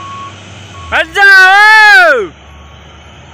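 A truck horn blares loudly.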